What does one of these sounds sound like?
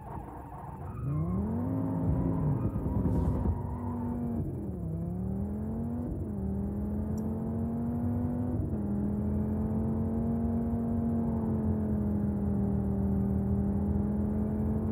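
A car engine revs hard, rising in pitch and dropping as the gears shift.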